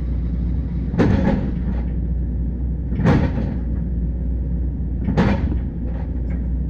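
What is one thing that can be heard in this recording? An excavator bucket scrapes and clanks against soil and stones.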